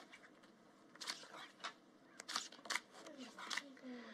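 Playing cards slide and snap onto a table.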